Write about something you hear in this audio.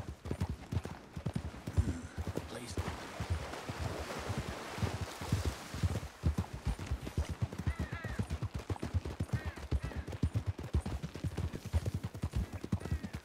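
Horse hooves thud steadily on a dirt trail.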